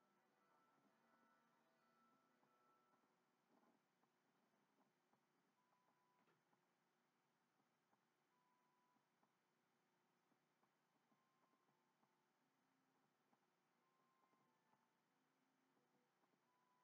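Game music plays softly with short chiming tones.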